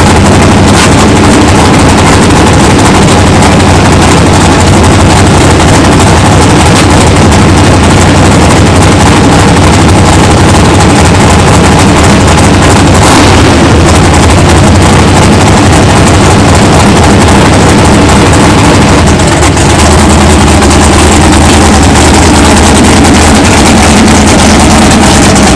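A powerful race car engine rumbles loudly and roughly, very close.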